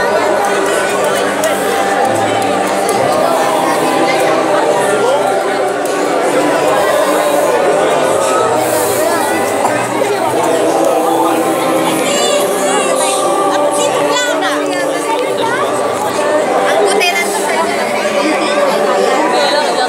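A crowd of men and women chatters loudly all around, outdoors.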